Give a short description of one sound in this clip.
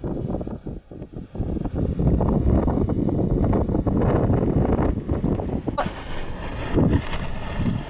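Wind blusters loudly across the microphone outdoors.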